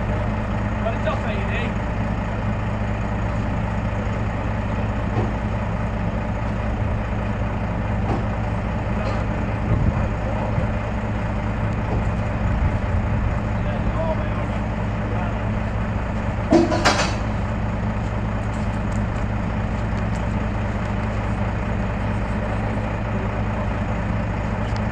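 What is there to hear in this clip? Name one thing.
A heavy truck engine idles with a steady low rumble.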